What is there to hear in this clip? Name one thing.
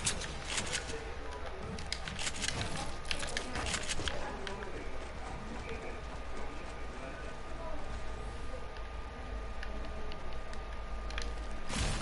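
Footsteps patter quickly on hard floors.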